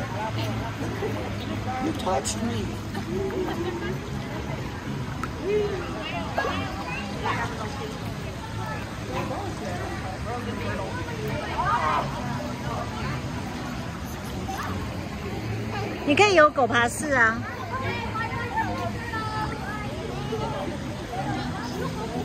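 Water splashes and laps nearby.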